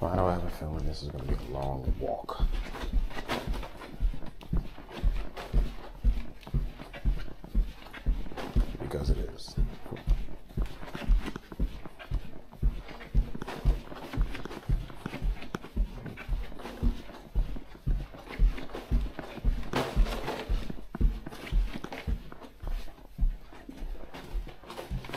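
Footsteps thud steadily on a carpeted floor.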